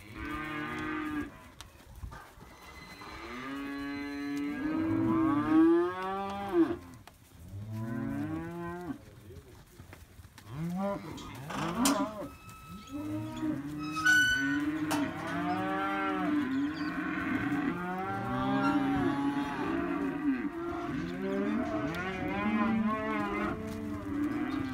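Cattle moo and bellow repeatedly close by.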